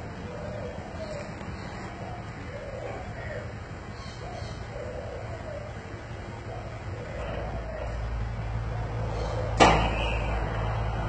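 An electric gate motor hums steadily.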